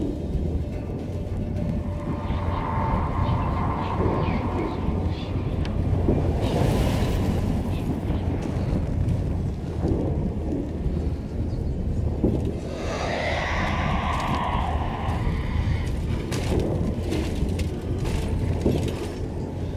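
Wind howls steadily across open snow.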